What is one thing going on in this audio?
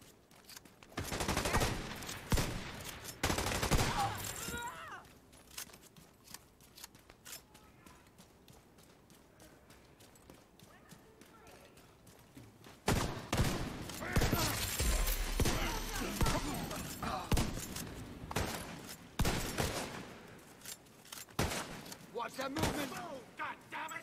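Gunfire rattles in rapid bursts nearby.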